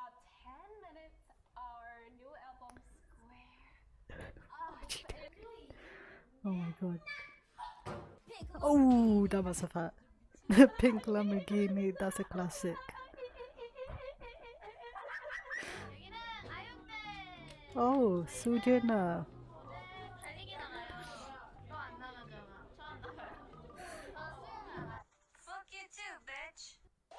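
A young woman with a headset talks and laughs close to a microphone.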